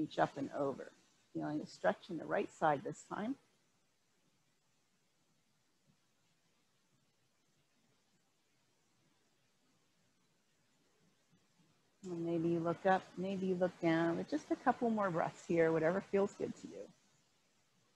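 A woman speaks calmly into a microphone, giving instructions.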